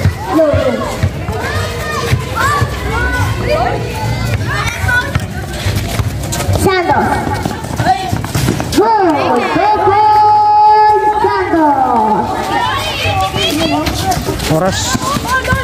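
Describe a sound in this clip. A crowd of spectators shouts and cheers loudly outdoors.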